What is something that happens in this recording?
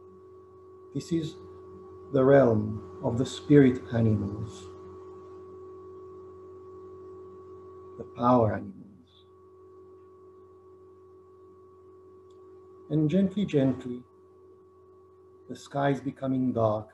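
A middle-aged man speaks calmly in short bursts over an online call.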